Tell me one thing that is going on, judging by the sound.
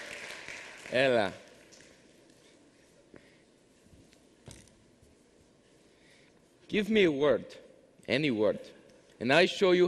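A man speaks to an audience through a microphone, echoing in a large hall.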